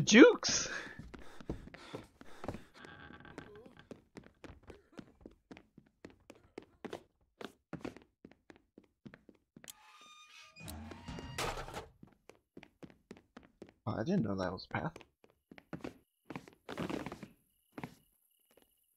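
Quick footsteps patter across hard floors.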